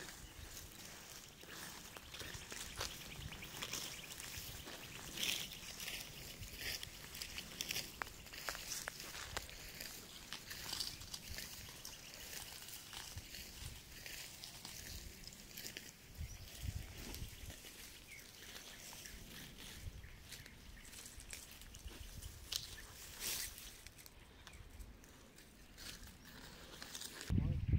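Dry plants rustle and snap as they are pulled up by hand.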